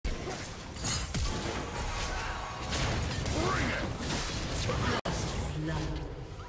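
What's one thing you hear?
Magic spells whoosh, crackle and burst in a video game battle.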